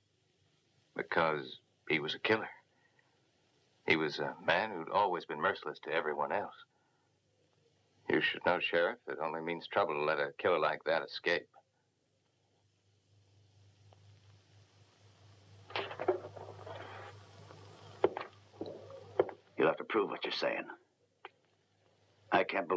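An elderly man speaks intently in a low, close voice.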